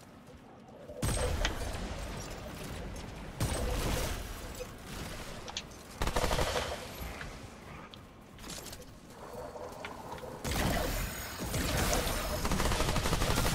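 A gun fires loud bursts of shots.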